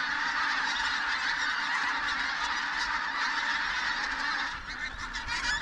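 A large flock of geese honks overhead.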